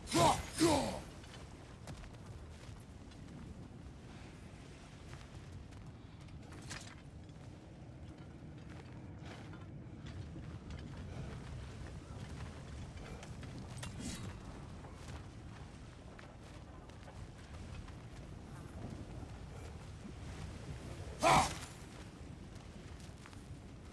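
Heavy footsteps crunch on gravel and dirt.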